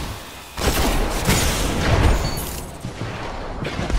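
An energy blast booms and crackles.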